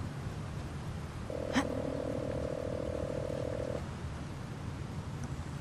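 Wind blows steadily in a low rumble outdoors.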